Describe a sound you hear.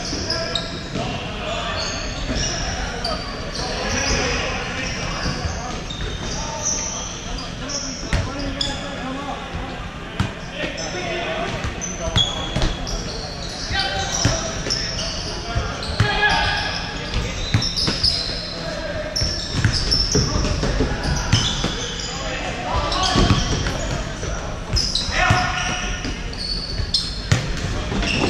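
Players' shoes squeak sharply on a wooden court in a large echoing hall.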